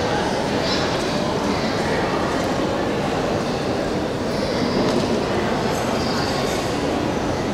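A group of young men sing together through loudspeakers.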